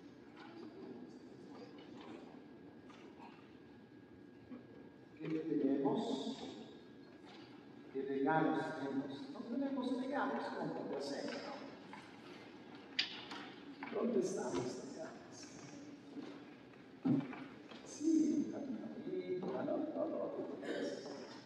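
A crowd of people murmurs and chats in a large echoing hall.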